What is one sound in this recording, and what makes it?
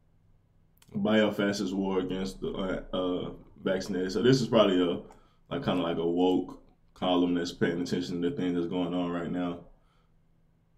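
A young man speaks calmly into a nearby microphone.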